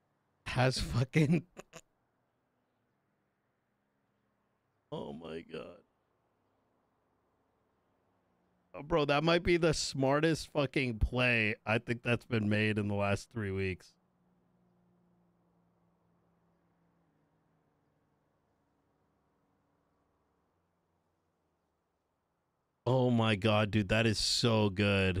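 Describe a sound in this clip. A young man speaks casually into a close microphone, in bursts with pauses.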